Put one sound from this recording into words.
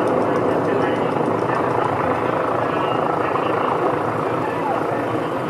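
A bus drives slowly closer along a city street.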